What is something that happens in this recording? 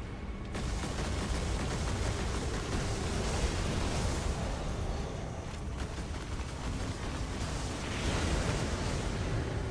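Rapid gunfire crackles with energy blasts amid a steady rumble.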